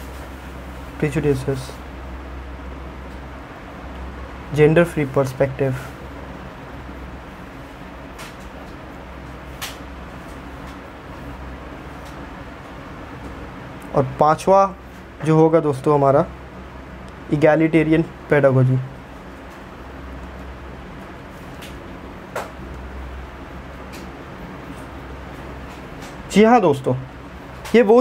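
A man speaks in short, calm phrases close by.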